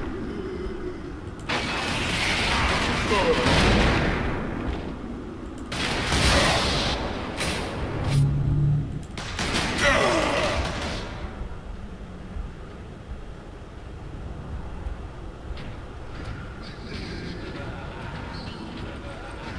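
Heavy armoured footsteps thud.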